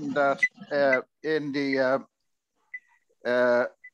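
An older man speaks over an online call.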